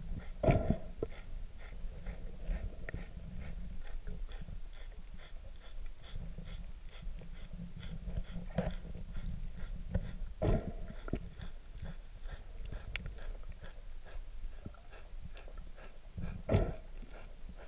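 A manatee grazing on the bottom makes short crunching clicks.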